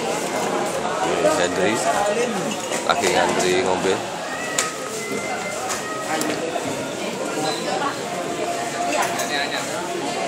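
Many men and women chatter in a busy, noisy room.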